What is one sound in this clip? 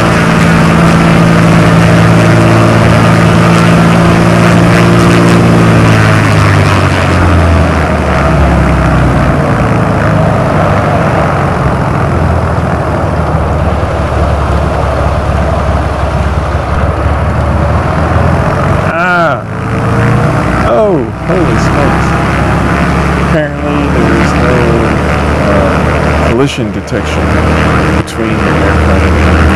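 A small propeller plane engine drones steadily.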